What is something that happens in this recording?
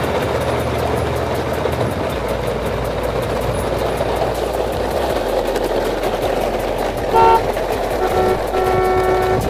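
Plastic toy truck wheels roll and crunch over gravel.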